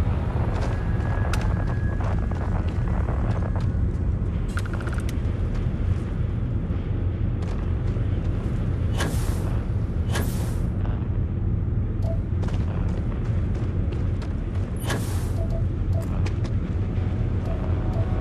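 Heavy boots crunch on sandy gravel with steady footsteps.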